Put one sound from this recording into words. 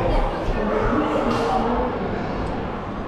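A crowd of visitors chatters in an echoing hall.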